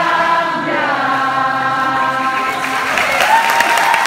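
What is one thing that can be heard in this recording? A woman sings a long held note through loudspeakers in a large hall.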